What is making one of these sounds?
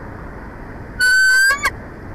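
An eagle gives a short, high, piercing call.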